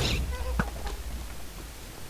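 A fireball whooshes past.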